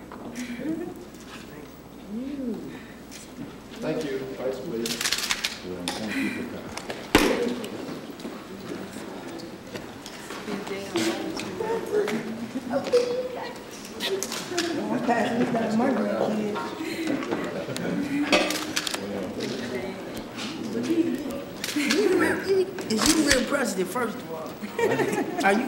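A woman laughs and chats cheerfully.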